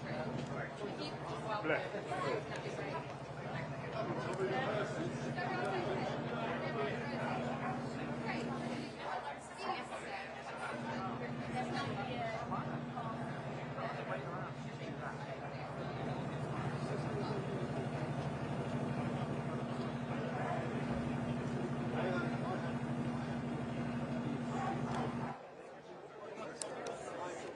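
A large audience murmurs and chatters in a big echoing hall.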